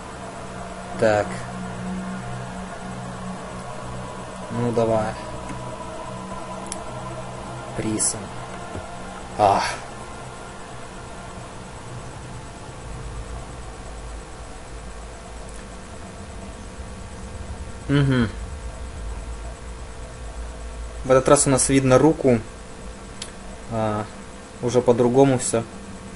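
A young man talks in short bursts, close to a microphone.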